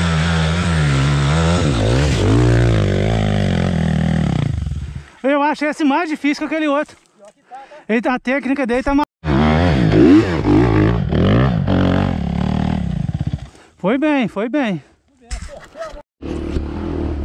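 A dirt bike engine revs hard and roars up close.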